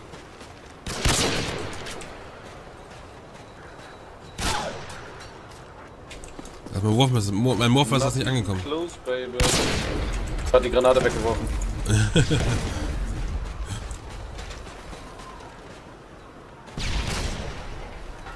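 A sniper rifle fires loud, sharp shots that ring out briefly.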